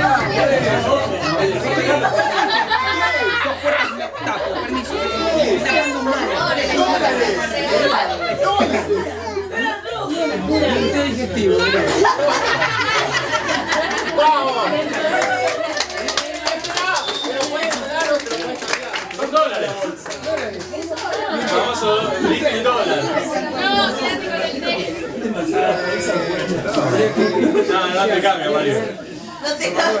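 Many people chatter and talk over one another in a busy echoing room.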